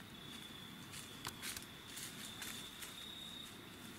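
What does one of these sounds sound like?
A turkey steps through dry leaves with soft rustling.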